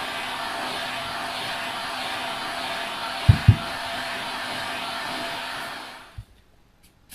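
A heat gun blows with a loud, steady roar and then switches off.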